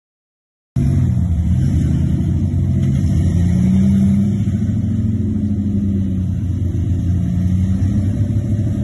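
An off-road vehicle's engine rumbles and revs as it crawls up over rock.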